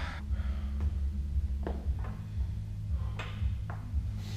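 A loaded barbell clanks as it is lifted off a rack.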